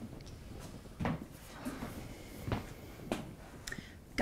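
Footsteps thud softly on the floor nearby.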